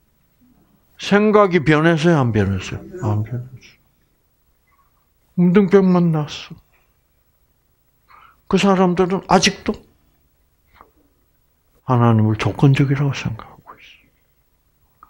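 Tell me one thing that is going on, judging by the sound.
An elderly man speaks with animation through a headset microphone, in short bursts with pauses.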